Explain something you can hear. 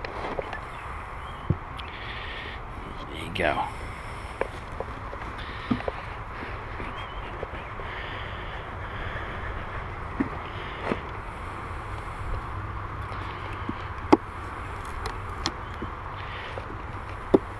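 A bee smoker's bellows puff.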